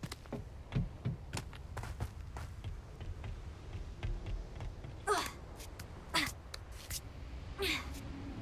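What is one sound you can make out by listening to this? Footsteps thud on wooden stairs and ladder rungs.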